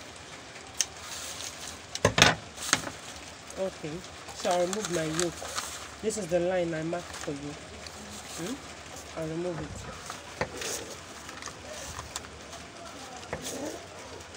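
Stiff paper rustles and crinkles as it is handled.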